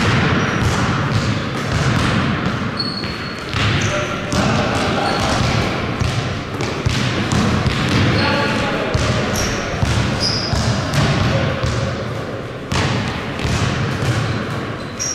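A basketball bounces in an echoing hall.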